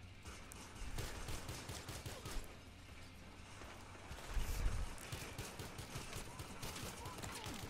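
A pistol fires repeated shots.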